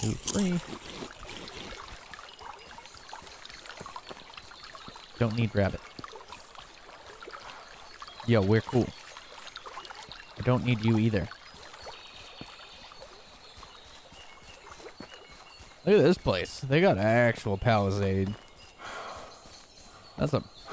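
Footsteps crunch softly on dry forest ground.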